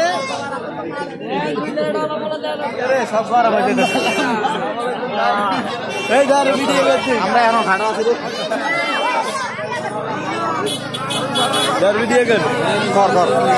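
A crowd of young men talk and shout loudly close by.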